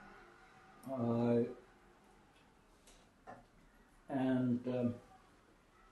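An elderly man speaks calmly in a few short phrases, close by in a room.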